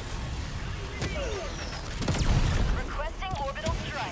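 A laser beam fires with a bright sizzling buzz.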